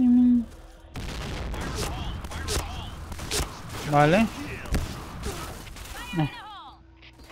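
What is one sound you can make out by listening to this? A shotgun fires loudly in short bursts.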